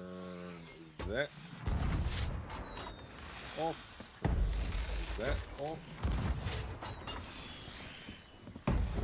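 Fireworks whistle up and burst with loud bangs and crackles.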